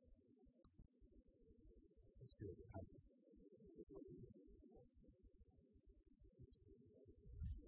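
A congregation of men and women murmurs and chatters in a large echoing hall.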